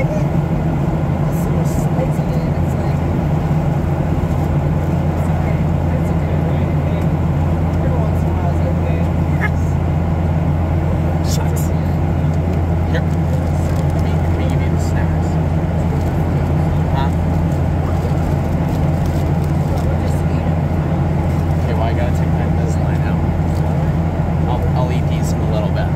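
A jet engine roars steadily inside an airliner cabin.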